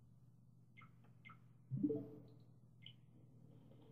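Short menu blips sound from a television's loudspeaker.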